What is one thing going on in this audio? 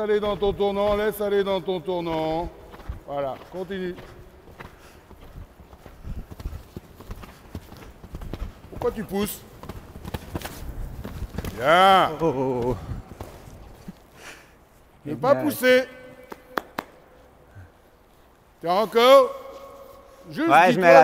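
A man speaks loudly and with animation, close to a microphone, in an echoing hall.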